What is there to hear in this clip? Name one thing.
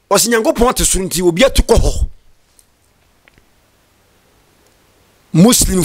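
A young man speaks forcefully and with emphasis into a close microphone.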